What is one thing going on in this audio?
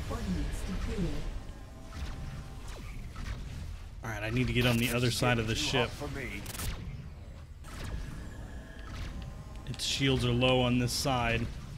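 Laser guns fire in short bursts.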